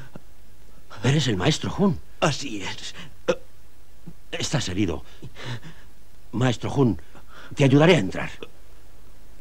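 A man speaks in low, tense bursts close by.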